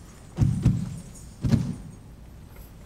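Dancers stamp their feet heavily on a stage.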